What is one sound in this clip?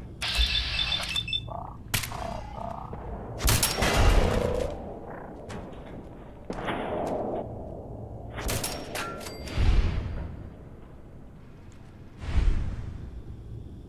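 Heavy gunshots boom and echo.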